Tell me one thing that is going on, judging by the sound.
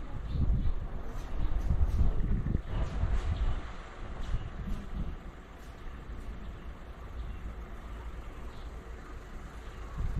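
Wind gusts and buffets outdoors, strongest at first and then easing.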